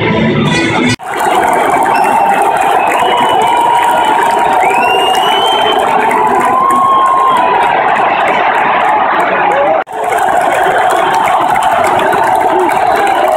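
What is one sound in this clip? A huge stadium crowd roars and cheers.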